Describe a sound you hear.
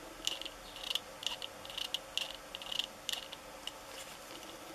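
Plastic parts click and tick softly as they are handled.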